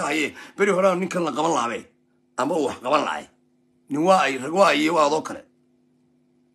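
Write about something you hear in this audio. A man speaks with animation close to a phone microphone, in short bursts.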